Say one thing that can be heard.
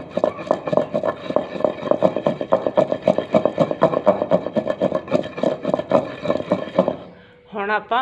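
A wooden pestle pounds rapidly in a clay mortar with dull thuds.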